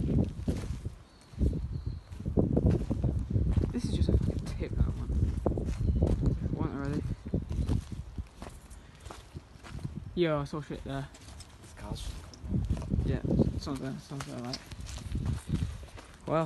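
Footsteps crunch over loose rubble.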